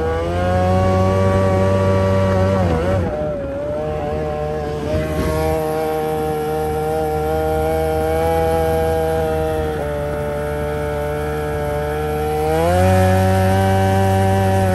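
A small outboard engine drones loudly and steadily, its pitch shifting as the throttle changes.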